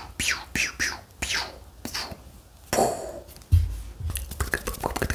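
Hands rustle and brush close to a microphone.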